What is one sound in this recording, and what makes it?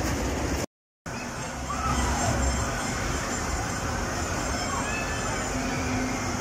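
A fairground ride whirls around with a steady rumble in a large echoing hall.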